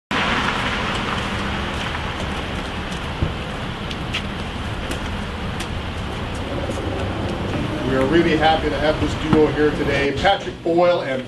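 Traffic rumbles steadily along a nearby street outdoors.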